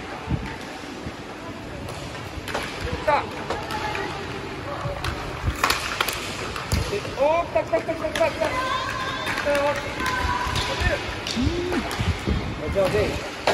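Inline skate wheels roll and scrape across the floor.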